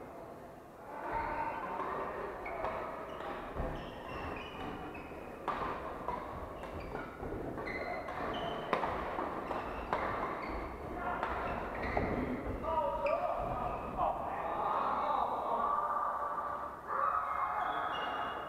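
Several people talk in the distance, echoing in a large hall.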